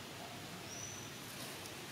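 A monkey's feet rustle dry leaves on the ground.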